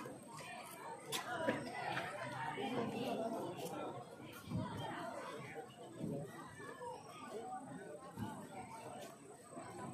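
A large outdoor crowd murmurs and cheers.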